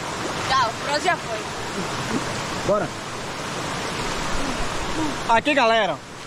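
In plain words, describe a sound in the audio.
A boy wades and splashes through shallow water.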